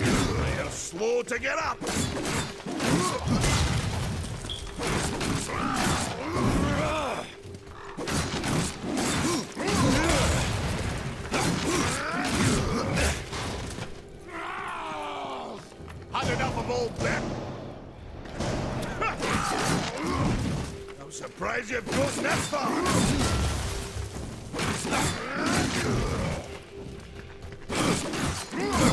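Heavy blades clash and strike again and again in a fight.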